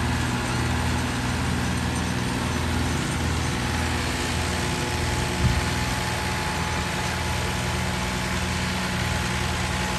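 A tractor engine rumbles steadily at work.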